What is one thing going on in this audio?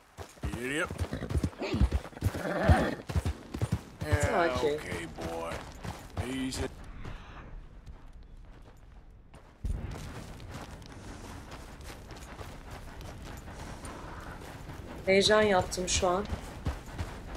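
A woman speaks with animation into a close microphone.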